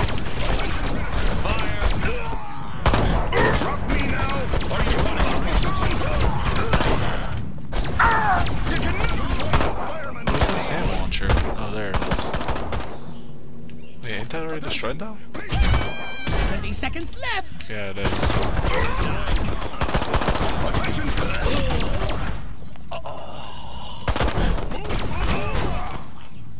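A sci-fi ray gun fires crackling zaps.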